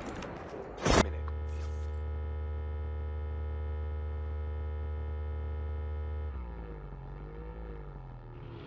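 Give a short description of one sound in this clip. A motorbike engine hums steadily, then shifts pitch.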